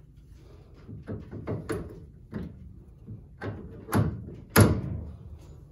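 A ratchet wrench clicks in short bursts against metal.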